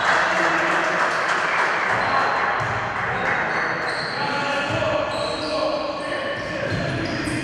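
A crowd of spectators murmurs and calls out in an echoing hall.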